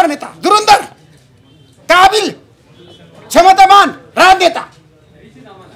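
A middle-aged man shouts forcefully into microphones in a room with some echo.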